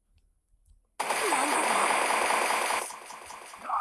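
A monstrous creature roars.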